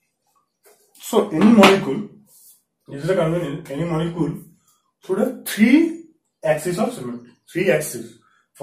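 A young man speaks clearly and with animation, close by.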